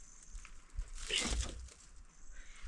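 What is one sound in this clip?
A wicker basket thumps onto the ground.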